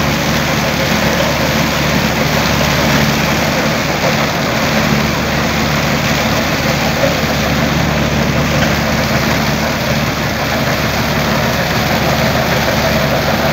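A seed drill rattles over dry stubble.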